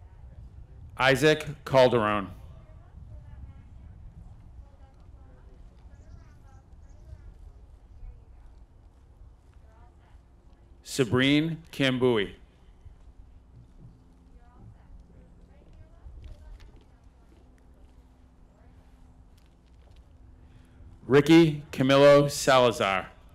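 A man reads out names through a loudspeaker outdoors, with echo.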